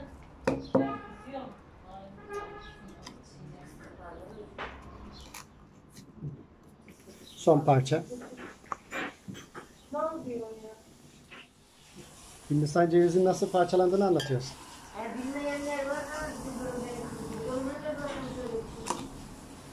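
A knife scrapes and pries coconut flesh from a hard shell.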